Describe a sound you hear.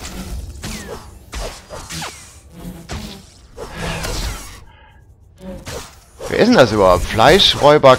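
Blades swing and strike with sharp whooshes and clangs.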